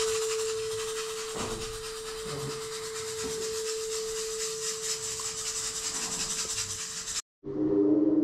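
A singing bowl rings with a steady, humming tone.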